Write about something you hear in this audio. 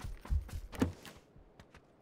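A door creaks open.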